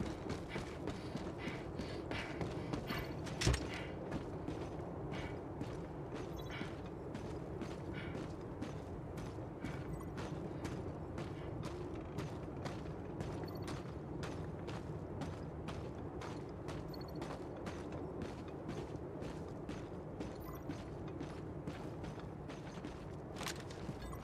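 Footsteps crunch steadily over hard ground.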